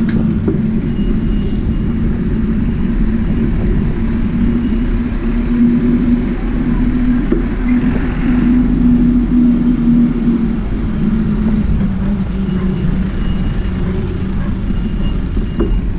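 Truck engines rumble nearby.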